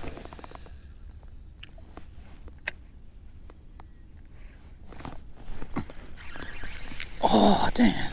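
A fishing reel clicks and whirs as its handle is turned.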